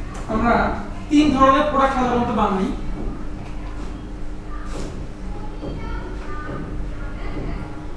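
A whiteboard eraser rubs and squeaks across a board.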